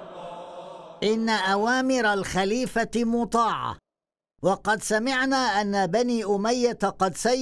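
An elderly man speaks loudly and forcefully.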